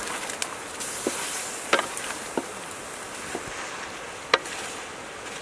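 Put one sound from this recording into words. A metal spatula scrapes and clanks against a pan.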